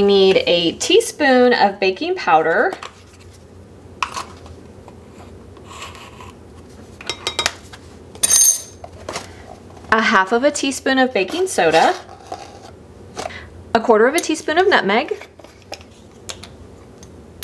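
A measuring spoon scoops flour and clinks against a glass jug.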